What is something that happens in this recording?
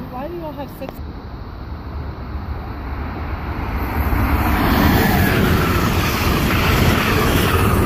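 A train approaches and roars past close by, growing louder.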